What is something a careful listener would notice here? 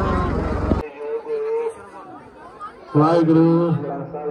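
A group of children sings together outdoors.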